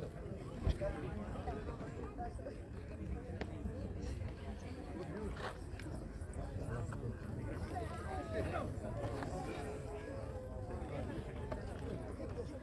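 A crowd of men and women chatters outdoors in the open air.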